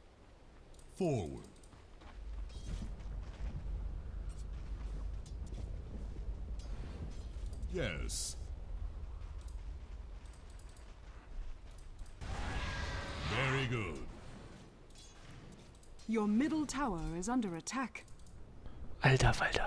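Game spells whoosh and crackle during a fight.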